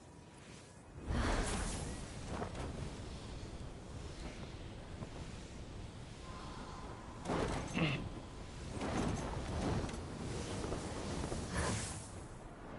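Wind rushes loudly past a gliding figure.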